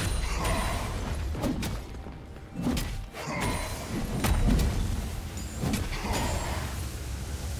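Weapons clash and hit repeatedly.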